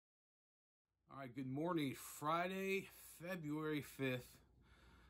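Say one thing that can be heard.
A middle-aged man speaks calmly and close to the microphone.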